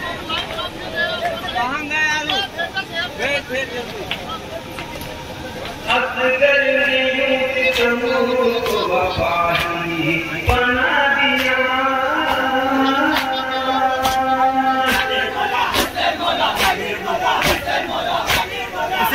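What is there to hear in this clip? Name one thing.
A crowd of men chants loudly together.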